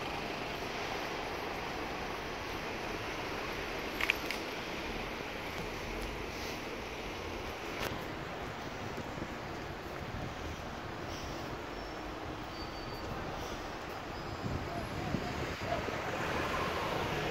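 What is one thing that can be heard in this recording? Traffic hums steadily outdoors on a city street.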